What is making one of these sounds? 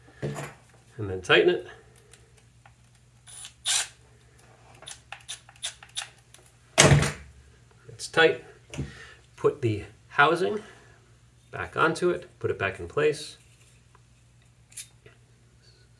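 Small metal parts click and clink in hands.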